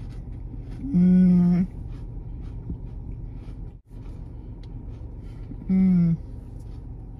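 A young woman hums while chewing food.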